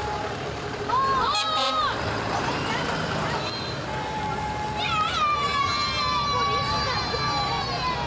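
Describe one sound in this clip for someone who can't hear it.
A fire truck's siren gives short rising whoops.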